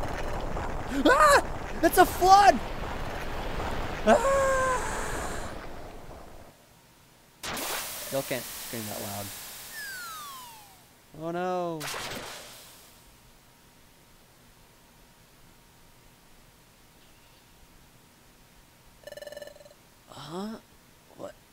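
Short chirpy electronic sound effects blip now and then.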